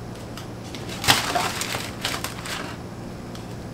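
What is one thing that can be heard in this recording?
A plate drops into a trash bin with plastic rustling.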